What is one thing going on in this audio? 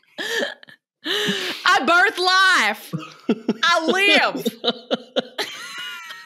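A young woman speaks excitedly into a microphone over an online call.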